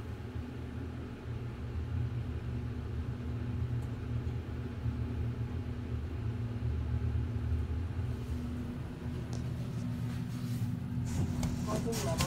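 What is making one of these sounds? An elevator hums steadily with a low drone.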